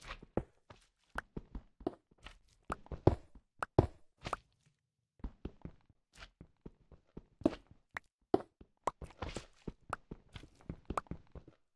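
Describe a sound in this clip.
Stone blocks crumble and break apart.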